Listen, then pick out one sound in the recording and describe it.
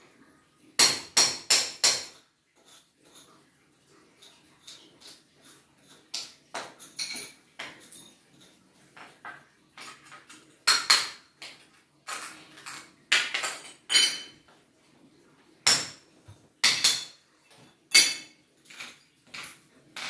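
Ceramic tiles clatter and clink as they are handled on a hard floor.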